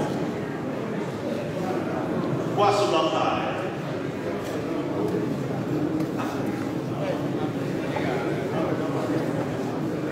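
A crowd of men and women chatters and murmurs in a large echoing hall.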